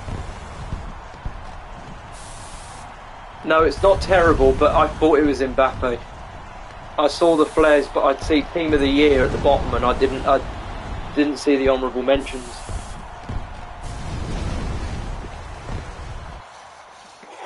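Flames roar and whoosh from fireworks.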